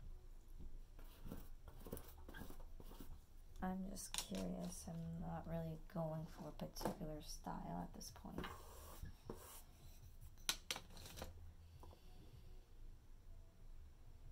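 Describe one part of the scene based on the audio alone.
A paintbrush dabs and scrapes on a canvas.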